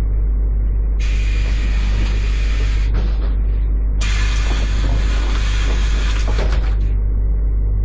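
Bus doors hiss with bursts of air.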